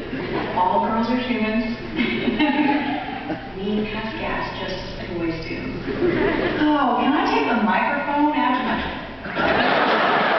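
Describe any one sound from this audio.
A woman talks with animation through loudspeakers in a large echoing hall.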